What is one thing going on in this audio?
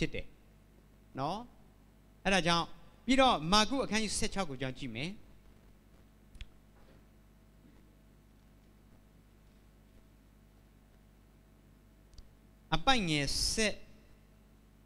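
A young man speaks calmly into a microphone, pausing between phrases.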